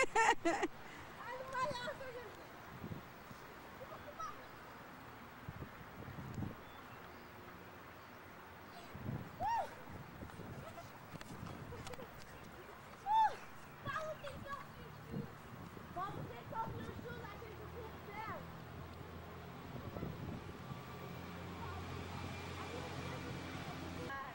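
Children shout and call out excitedly outdoors.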